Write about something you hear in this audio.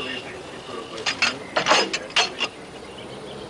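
A heavy metal gun breech clanks shut.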